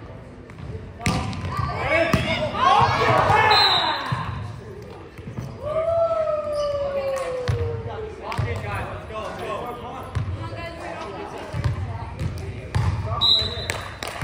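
Young women shout and call out to each other with animation.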